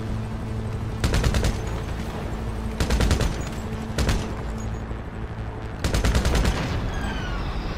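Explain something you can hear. Gunshots crack in bursts.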